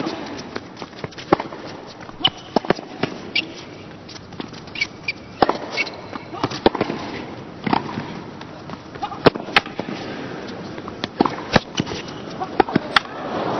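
A tennis ball is struck back and forth with rackets.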